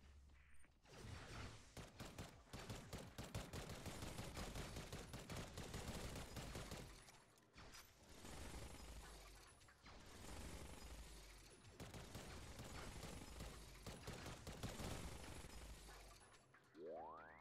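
Rapid laser gunfire blasts repeatedly.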